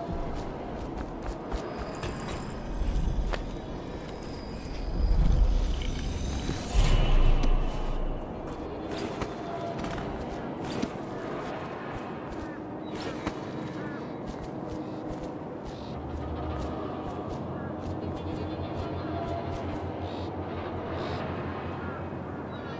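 Footsteps tread on stone steps.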